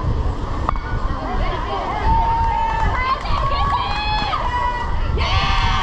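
Children shout and cheer across an open field.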